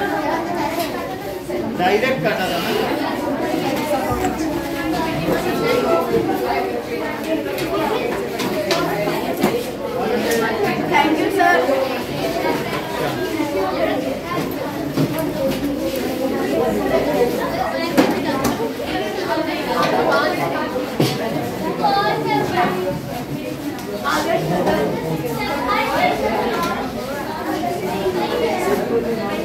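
A middle-aged man lectures steadily nearby.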